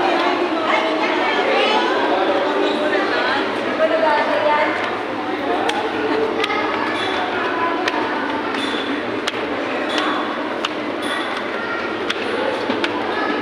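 A crowd of young people chatter and call out nearby, echoing in a stairwell.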